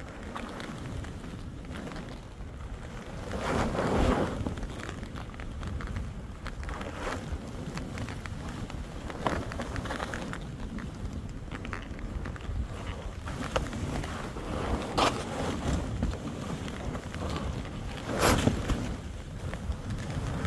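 Wind rumbles against a microphone outdoors.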